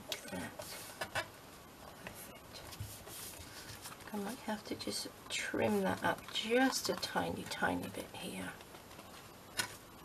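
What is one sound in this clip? Paper rustles and crinkles as it is folded and pressed flat.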